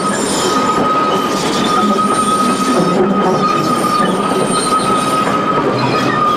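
Train wheels rattle and clatter over rails.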